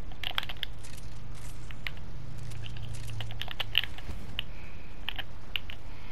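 Wooden and stone walls clunk into place.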